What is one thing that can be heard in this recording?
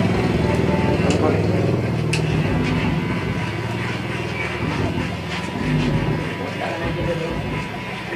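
Electric hair clippers buzz close by.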